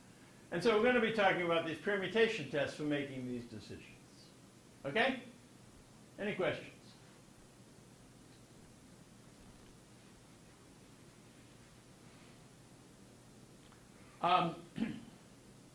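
An elderly man lectures calmly through a microphone in a large room.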